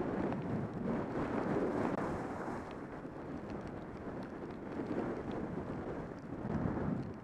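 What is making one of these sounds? Skis hiss and scrape over packed snow.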